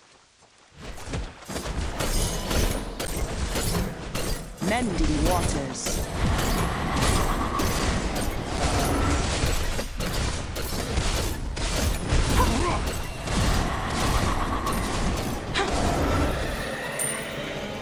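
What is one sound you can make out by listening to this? Deep booming impacts thud repeatedly.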